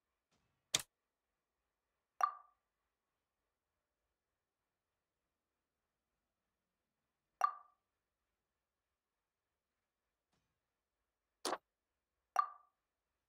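Short interface clicks and chimes sound each time a menu tab switches.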